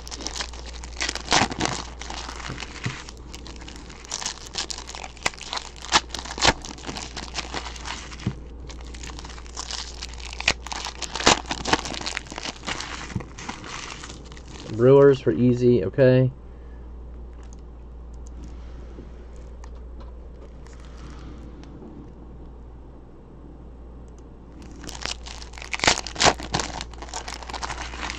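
Foil card wrappers crinkle and rustle.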